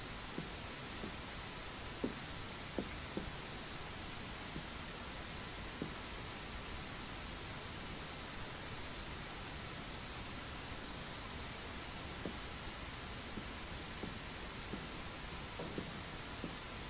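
Footsteps thud softly on a wooden floor.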